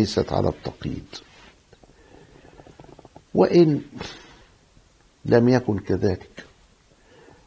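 An elderly man speaks calmly and slowly into a close microphone, with pauses.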